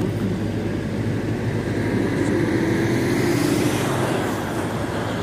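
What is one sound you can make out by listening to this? A jet airliner roars as it approaches low overhead, growing louder.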